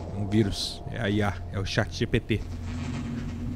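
A man speaks briefly and with animation close to a microphone.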